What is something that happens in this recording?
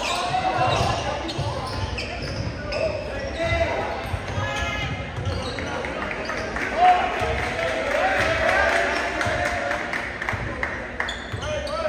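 A basketball thumps as players dribble it on the court.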